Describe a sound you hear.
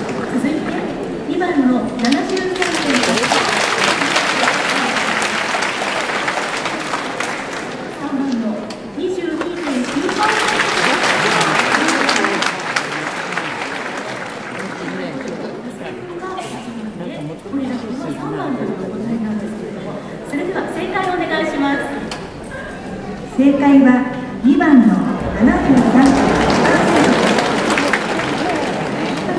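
A young woman speaks with animation through a loudspeaker in a large echoing hall.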